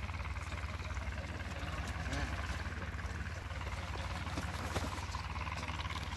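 A goose flaps its wings.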